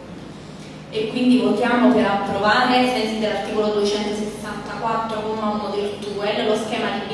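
A man speaks into a microphone through loudspeakers, echoing in a large hall.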